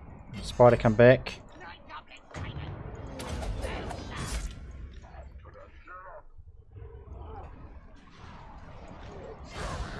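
Weapons clash and soldiers roar in a large battle.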